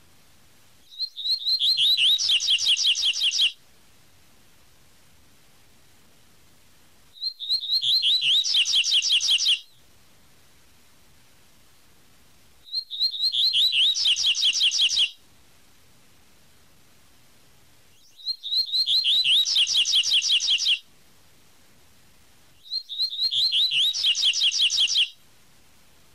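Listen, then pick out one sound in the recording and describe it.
A small bird sings loud, rapid whistling phrases, repeated with short pauses between them.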